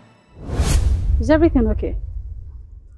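A woman speaks sharply close by.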